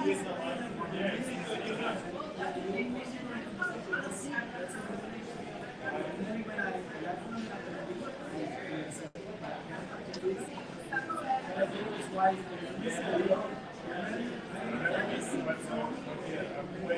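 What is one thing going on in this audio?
A crowd of men and women chatter in a busy room nearby.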